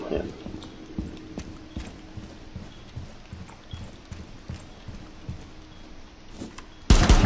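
Pistol shots crack one after another.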